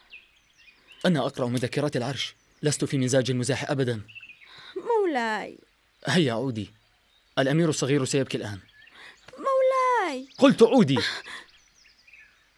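A young woman speaks tensely up close.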